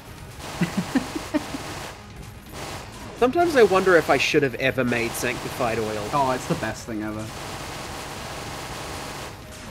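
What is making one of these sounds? Video game guns fire in rapid, quick pops.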